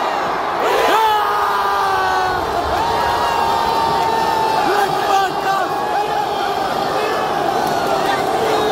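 A large crowd roars and cheers in a wide open stadium.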